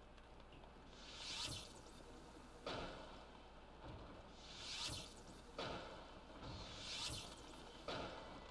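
Fireballs whoosh and burst repeatedly.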